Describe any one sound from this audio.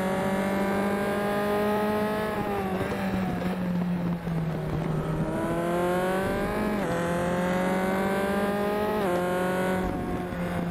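A racing car engine roars and climbs in pitch, dropping sharply at each gear change.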